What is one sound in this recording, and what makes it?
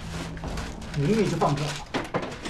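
A man mutters to himself in puzzlement.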